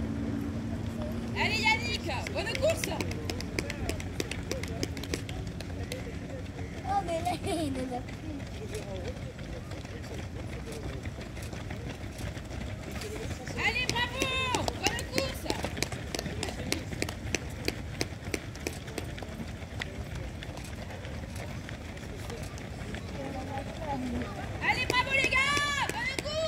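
Many runners' feet patter on the pavement.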